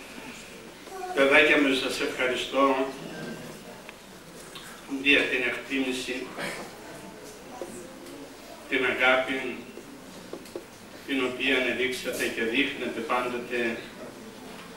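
An elderly man speaks calmly into a microphone, heard through loudspeakers.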